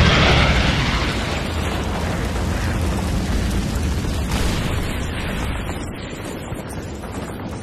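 A tank engine rumbles nearby.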